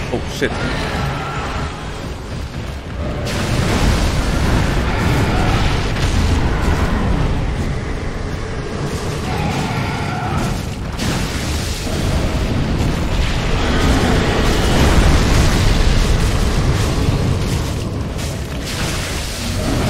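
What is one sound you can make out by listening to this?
Deep battle sounds rumble and crash loudly.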